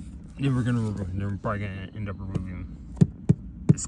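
Fingers tap and press against plastic trim.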